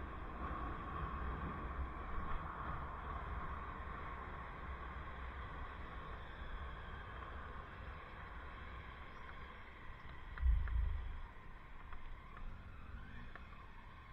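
Wind rumbles steadily over a microphone outdoors.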